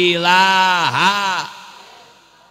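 A man shouts passionately into a microphone over a loudspeaker, his voice echoing.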